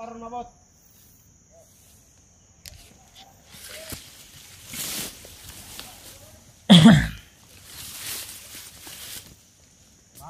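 Leaves and stems rustle and swish as someone pushes through dense undergrowth close by.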